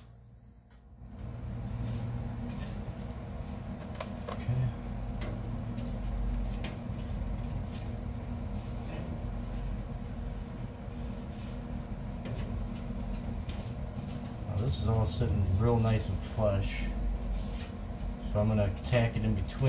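A sheet of metal creaks and rattles as it is bent by hand.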